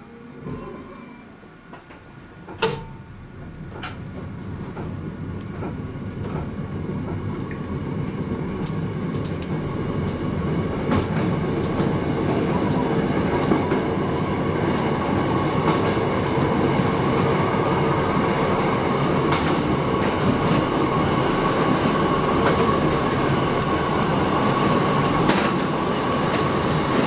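A train accelerates along the track with a rising rumble and hum.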